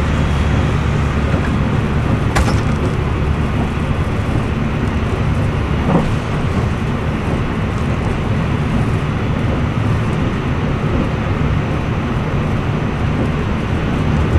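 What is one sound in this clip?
A passing train rushes by close outside.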